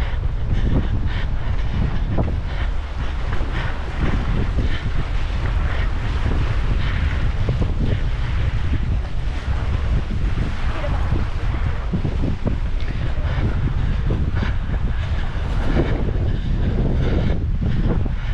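Wind blows hard across an open space outdoors.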